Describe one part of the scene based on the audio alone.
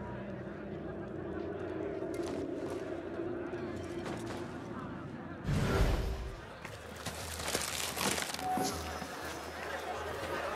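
Footsteps pad softly across a stone floor.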